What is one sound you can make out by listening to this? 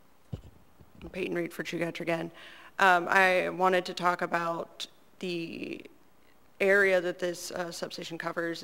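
A young woman speaks steadily into a microphone.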